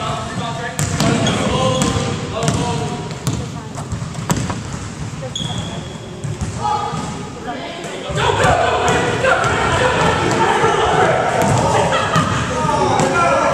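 Sneakers squeak on a wooden floor in a large echoing hall.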